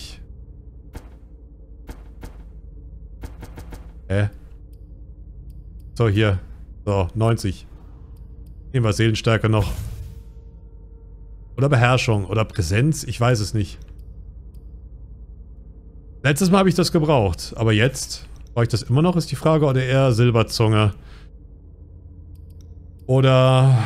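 Soft interface clicks sound as menu options change.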